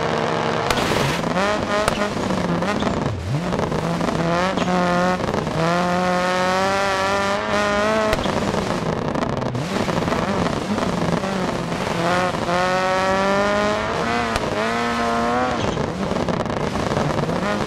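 A Subaru Impreza rally car engine revs hard and shifts through the gears.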